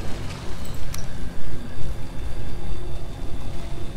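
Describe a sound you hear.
A wooden gate thuds into place.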